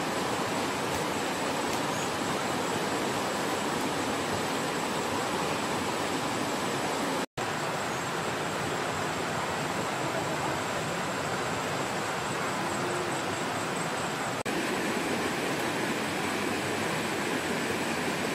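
A wood fire crackles and hisses.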